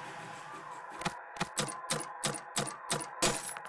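Quick clicks rattle in a steady series.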